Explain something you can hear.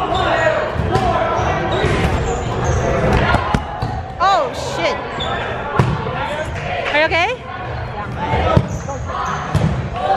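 A crowd of young people shouts and cheers in a large echoing gym.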